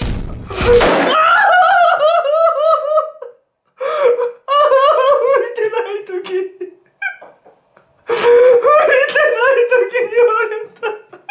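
A young man wails and sobs loudly, close by.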